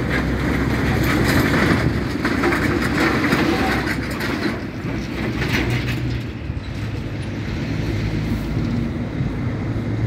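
Wind rumbles outdoors.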